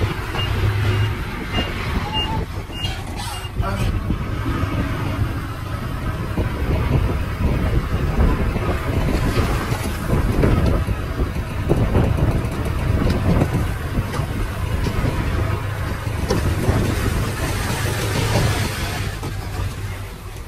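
A truck engine rumbles and idles nearby.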